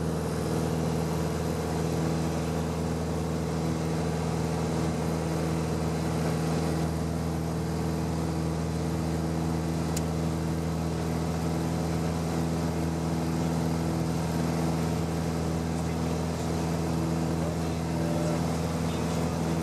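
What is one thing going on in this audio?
A small propeller engine drones steadily and loudly from close by.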